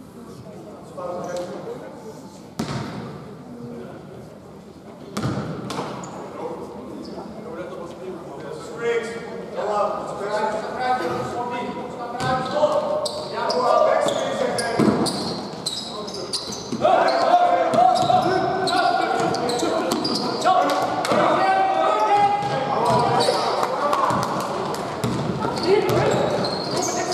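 Young men shout and call out across the hall.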